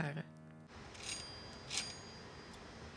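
A metal door knocker raps on a door.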